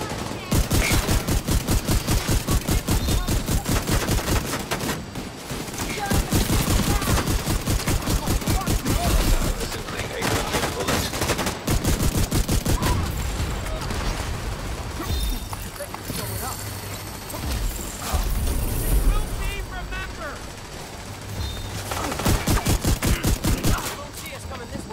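Rapid automatic gunfire rattles in quick bursts.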